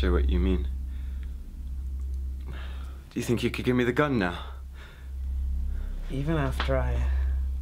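A young man speaks in a tense, low voice up close.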